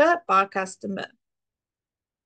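A woman speaks briefly and calmly into a microphone, close by.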